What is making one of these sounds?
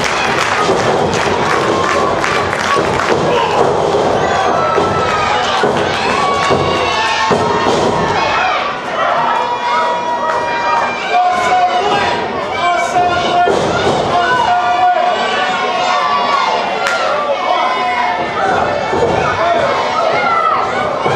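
Children in a crowd shout and chant excitedly.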